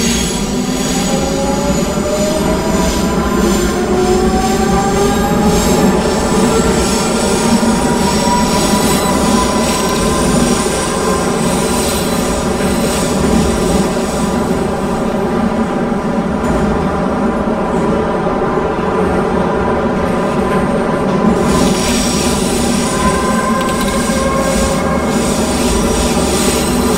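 A subway train rumbles loudly through a tunnel.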